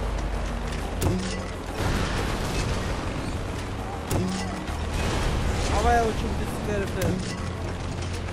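A heavy gun fires in loud bursts.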